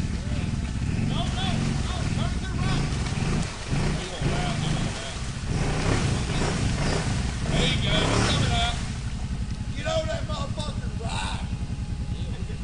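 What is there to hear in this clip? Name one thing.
Men shout and cheer nearby outdoors.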